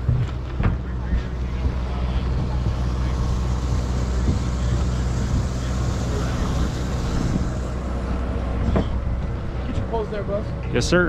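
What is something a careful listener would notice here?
Footsteps thud on a wooden dock.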